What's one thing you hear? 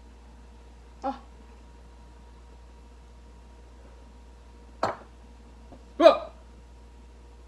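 A young woman exclaims after drinking.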